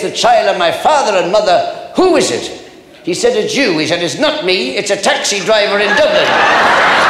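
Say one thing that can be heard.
An elderly man tells a joke with animation.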